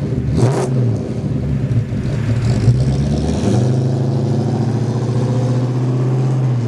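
A car engine rumbles and revs as the car drives away.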